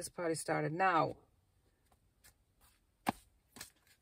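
Paper cards rustle in a hand.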